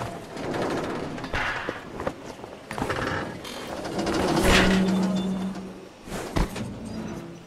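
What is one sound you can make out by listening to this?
A metal sign creaks and crashes down.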